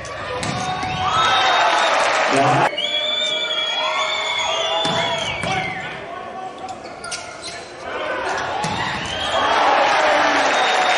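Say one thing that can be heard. Players shout and cheer in a large echoing hall.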